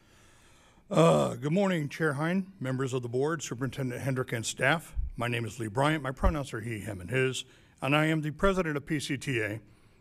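A man speaks into a microphone at a podium, heard over a loudspeaker in a large room.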